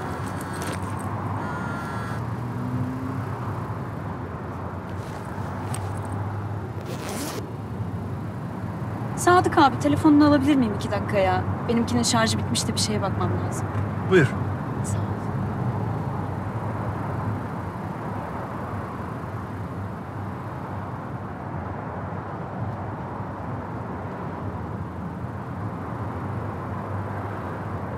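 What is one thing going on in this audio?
A car engine hums steadily in a closed car.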